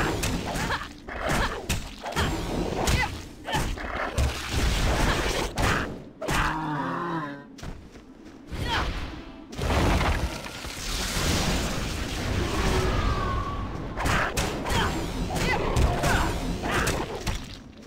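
Weapons clash and thud against monsters.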